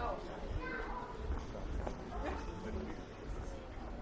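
People talk nearby outdoors.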